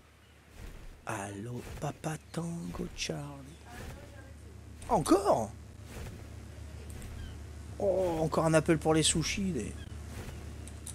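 An older man talks calmly into a microphone.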